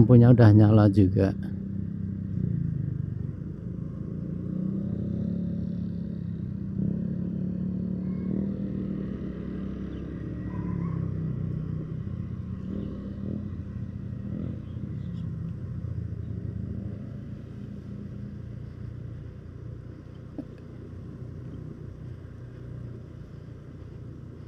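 A motorbike engine hums steadily while riding along a road.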